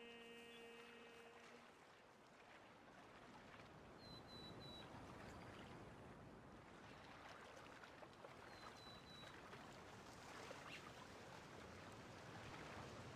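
Water splashes and rushes against a raft moving along.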